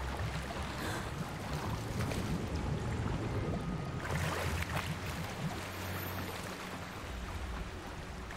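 Water swirls and bubbles as a swimmer dives under.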